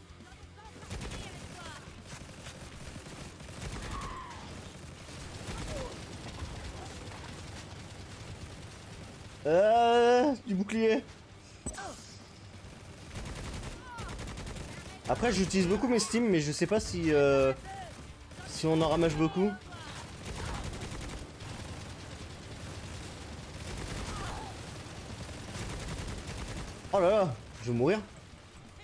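Rapid gunfire rattles from a video game.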